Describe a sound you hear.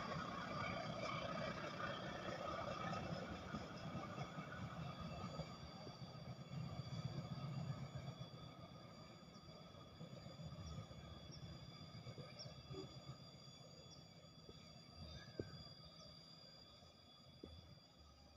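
A distant train rumbles along the tracks and slowly fades.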